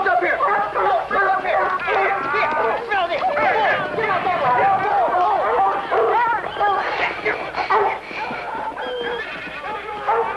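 A crowd of young people shout and scream excitedly outdoors.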